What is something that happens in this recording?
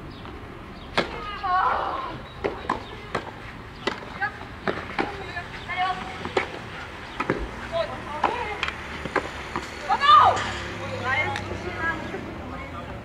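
Rackets strike a tennis ball back and forth outdoors.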